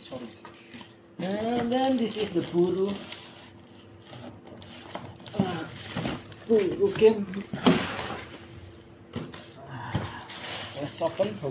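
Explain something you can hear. Cardboard boxes scrape and rustle as they are handled.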